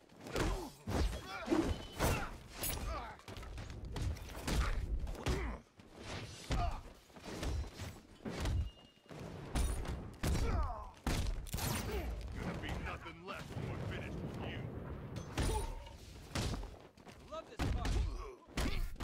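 Men grunt and cry out as they are struck.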